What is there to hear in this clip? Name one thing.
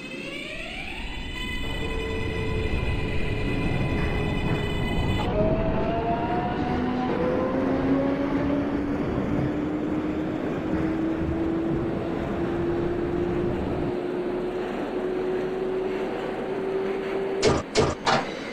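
A train's electric motors whine, rising steadily in pitch as the train speeds up.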